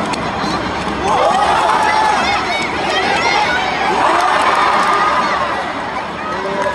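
Fans in the crowd chant and sing loudly.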